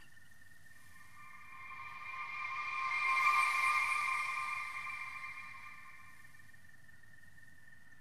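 A magical shimmering chime swells and then fades away.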